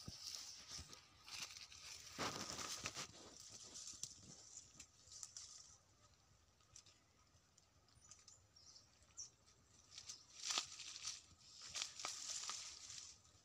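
Leaves rustle and twigs crackle as branches are pushed aside.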